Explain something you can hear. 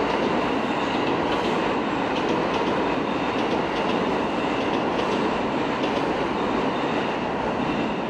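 A train rumbles slowly into a station, heard in a large echoing hall.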